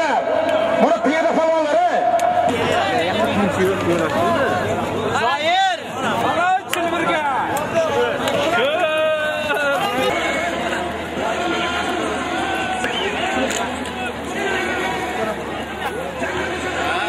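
A large crowd of men shouts and chatters outdoors.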